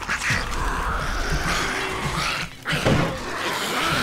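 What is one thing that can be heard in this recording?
A zombie growls and snarls up close.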